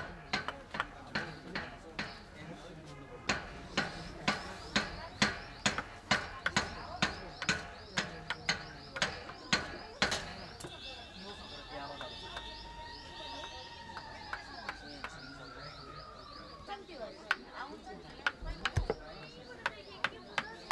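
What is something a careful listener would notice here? A mallet knocks a chisel into wood in quick, regular taps.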